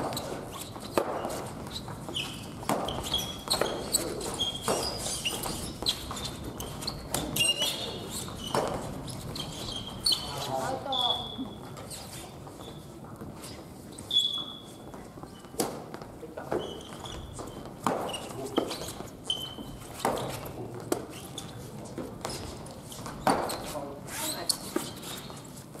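Badminton rackets strike a shuttlecock in a large echoing hall.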